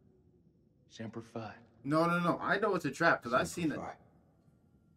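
A man speaks firmly and briefly.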